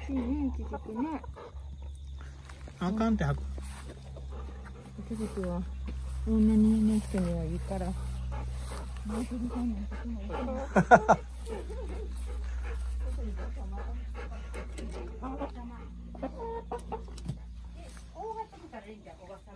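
A hen clucks softly nearby.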